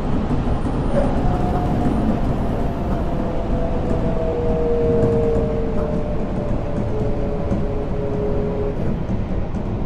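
A train's electric motor whines, slowly falling in pitch.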